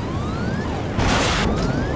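A missile whooshes past.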